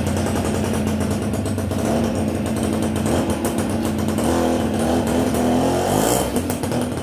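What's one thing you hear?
A small motorcycle engine idles close by.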